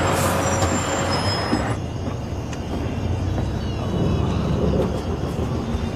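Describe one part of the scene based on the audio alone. A bus engine idles with a low rumble.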